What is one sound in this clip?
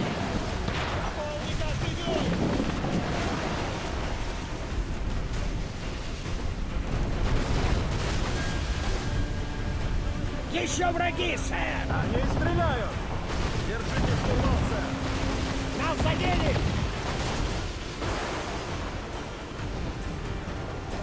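Heavy waves crash and surge against a wooden ship.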